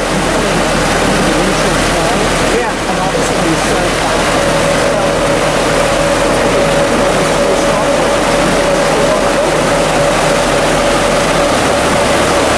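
A boat engine idles steadily.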